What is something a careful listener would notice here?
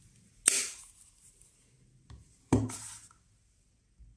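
A plastic case is set down on a table with a knock.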